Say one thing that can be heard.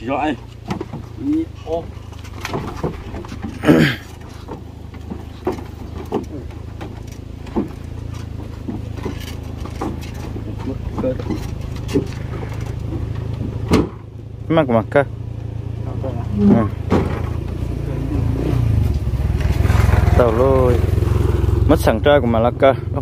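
Men talk to each other nearby outdoors.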